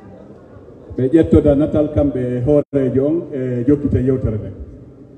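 A man speaks loudly through a microphone and loudspeakers.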